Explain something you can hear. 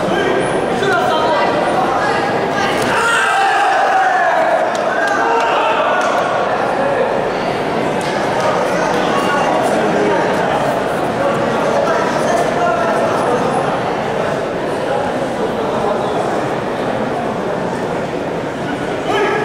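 A man calls out commands loudly across a hall.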